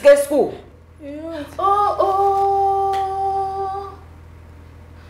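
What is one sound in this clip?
A woman calls out in a long, drawn-out shout.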